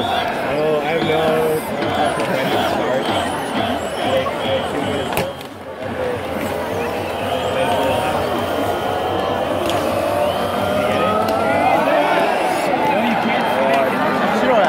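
Rubber balloons squeak as they rub together close by.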